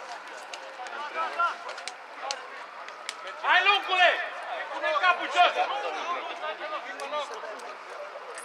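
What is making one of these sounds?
Men shout to each other across an open field in the distance.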